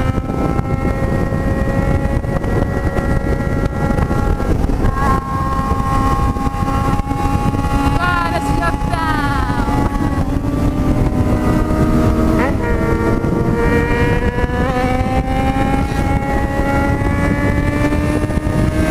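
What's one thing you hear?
A motorcycle engine hums steadily and shifts pitch as it speeds up and changes gear.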